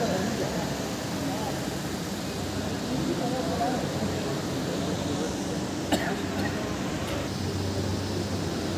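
Electric fans whir steadily.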